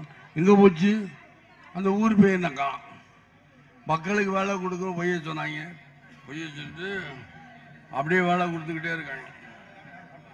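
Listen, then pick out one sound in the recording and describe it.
A middle-aged man speaks loudly and forcefully into a microphone over a loudspeaker, heard outdoors.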